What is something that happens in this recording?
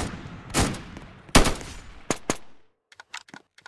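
Gunshots fire in quick bursts, each with a short echoing tail.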